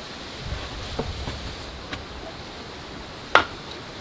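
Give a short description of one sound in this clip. A hammer knocks on a wooden post.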